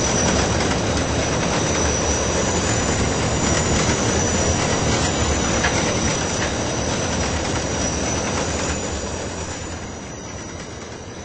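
A subway train rumbles past on the tracks, then fades away.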